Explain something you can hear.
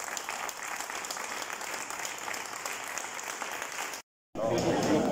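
A crowd applauds outdoors.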